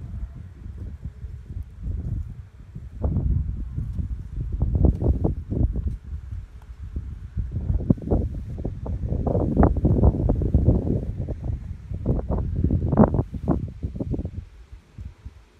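Wind gusts loudly against the microphone outdoors.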